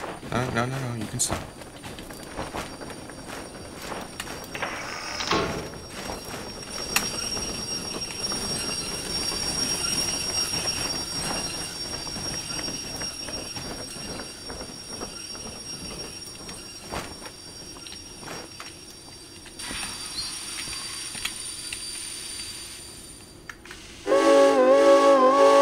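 A steam locomotive chugs and clanks along the track.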